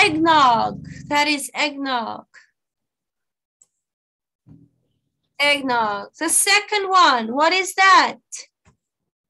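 A woman speaks animatedly into a microphone, heard as over an online call.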